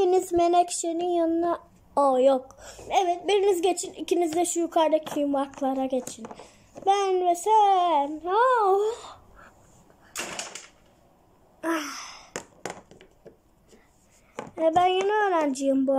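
Small plastic toys tap and clatter on a tabletop.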